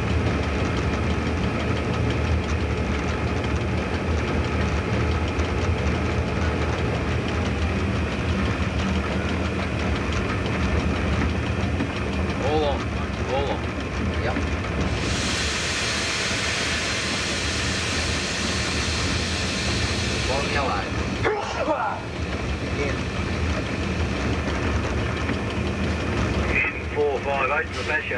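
A train engine rumbles steadily while rolling along the tracks.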